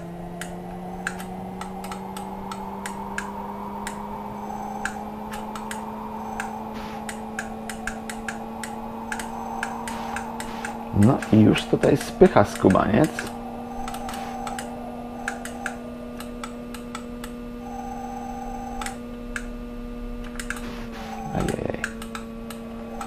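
Keys on a computer keyboard click.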